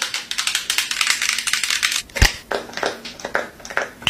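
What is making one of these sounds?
A lotion pump squirts.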